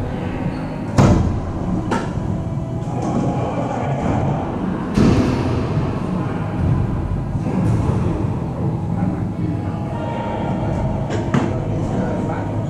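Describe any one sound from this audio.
A ball bounces off the walls and floor with hollow thuds.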